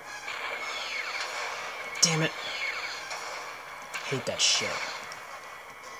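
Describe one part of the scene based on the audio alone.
Laser shots zap repeatedly from a video game through small speakers.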